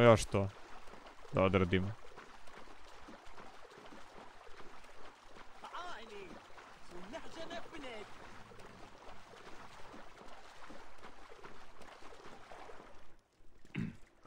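Water splashes steadily as someone swims.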